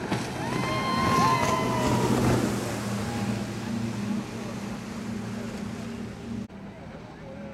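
A small motorboat engine drones close by as the boat passes.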